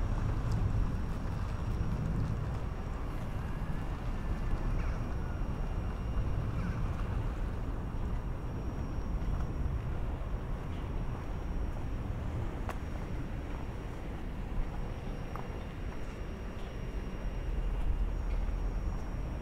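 Wind blows steadily outdoors, rumbling against the microphone.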